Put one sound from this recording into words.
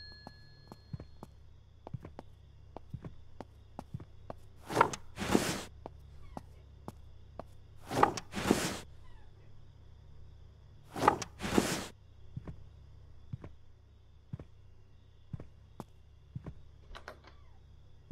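Soft footsteps fall on carpet.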